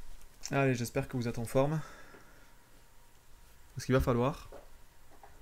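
A man speaks calmly into a close microphone in short bursts.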